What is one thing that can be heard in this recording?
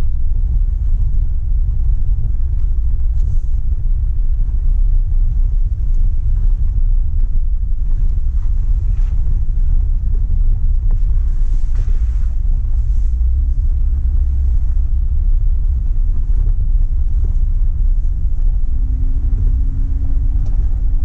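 Tyres crunch over a gravel road.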